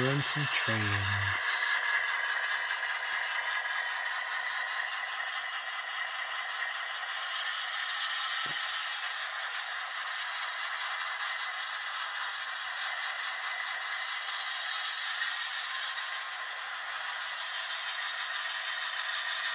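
Model train freight cars roll along a track with a light clatter.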